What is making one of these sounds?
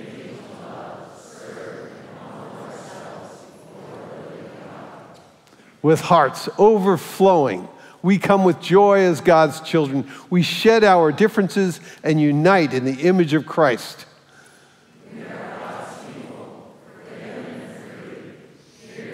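A congregation recites together in a large echoing hall.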